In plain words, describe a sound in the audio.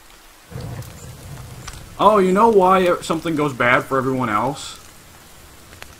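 A small fire crackles.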